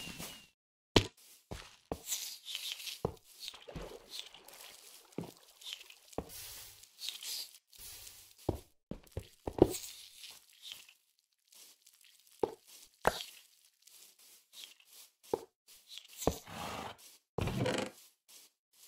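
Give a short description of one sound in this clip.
Stone blocks knock sharply as they are placed and broken.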